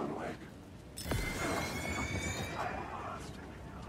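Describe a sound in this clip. Electric sparks crackle and fizz loudly.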